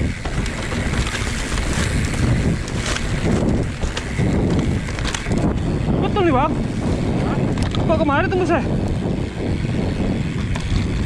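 Bicycle tyres roll and crunch over a bumpy dirt trail.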